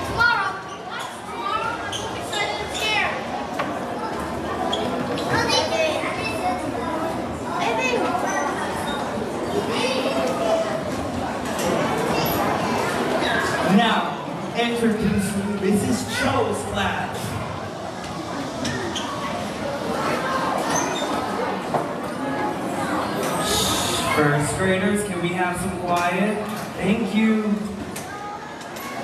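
Children sing together on a stage.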